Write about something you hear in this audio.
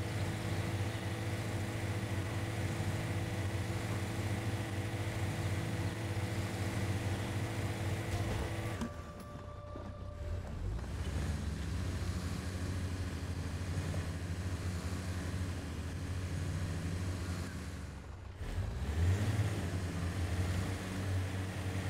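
An off-road vehicle's engine rumbles steadily as it crawls over rocks.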